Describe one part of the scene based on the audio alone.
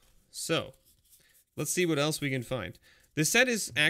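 Playing cards slide against each other in the hands.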